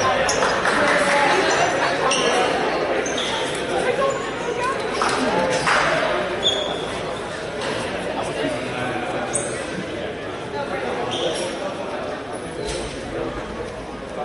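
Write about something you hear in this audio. Young players chatter and call out to each other in a large echoing gym.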